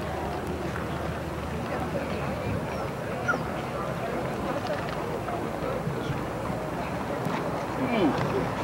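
A crowd murmurs and chatters in the distance outdoors.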